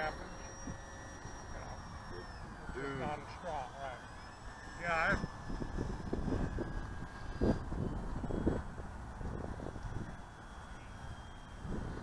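A small model plane's motor whines high overhead, shifting in pitch as it flies.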